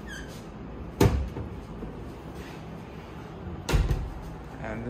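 A cupboard door bumps shut with a sharp knock.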